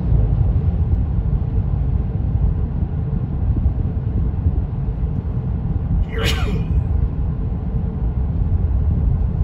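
A car drives along a paved road with a steady low rumble of tyres and engine.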